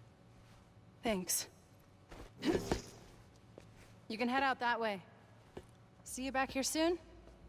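A young woman speaks softly and calmly, close by.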